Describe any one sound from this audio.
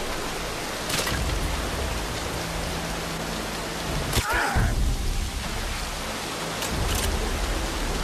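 A pistol fires sharp single shots.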